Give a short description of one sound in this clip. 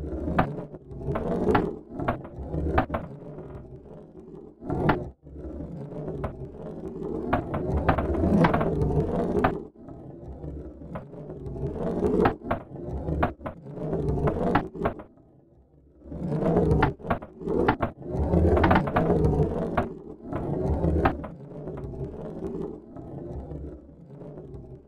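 A metal ball clicks against wooden walls.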